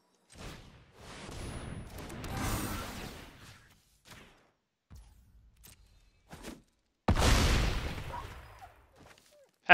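A magical whoosh sounds as a card is played.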